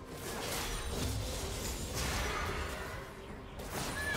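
Game characters clash with sharp hits.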